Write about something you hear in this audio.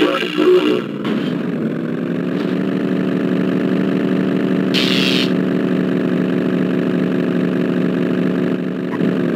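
A vehicle's engine roars at a steady, higher pitch.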